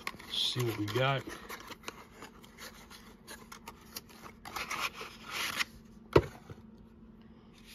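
Cardboard packaging rustles and scrapes between hands.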